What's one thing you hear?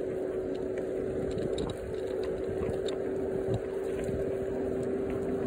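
Hard wheels roll steadily over rough asphalt with a low, humming rumble.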